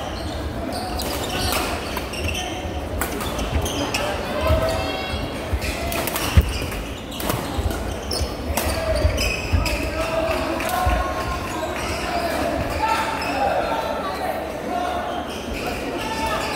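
Shuttlecocks are struck with rackets in sharp pops.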